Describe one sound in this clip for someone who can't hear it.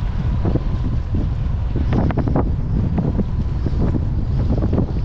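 Small waves splash against a kayak.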